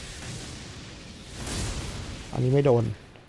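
A magical blast booms and crackles.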